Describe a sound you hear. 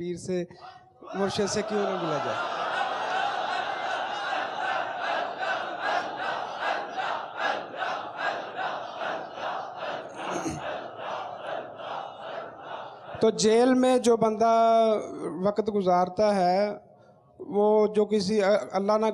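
A man speaks into a microphone with animation.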